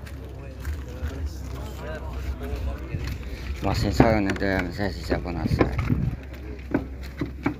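Young men talk nearby outdoors.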